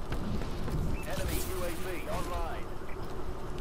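A young man talks briefly and casually into a microphone.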